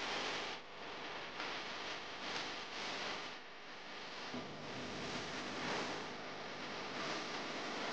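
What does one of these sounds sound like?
A cutting plotter whirs as its head slides back and forth.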